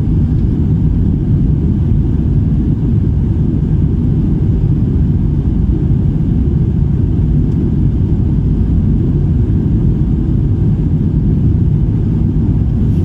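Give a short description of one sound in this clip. Jet engines roar steadily from inside an airliner in flight.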